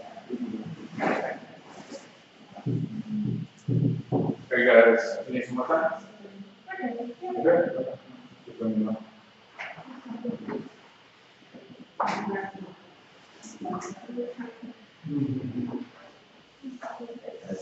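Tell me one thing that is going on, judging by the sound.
A man speaks from a distance in an echoing room.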